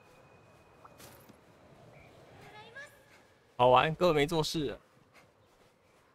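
Footsteps run across sand.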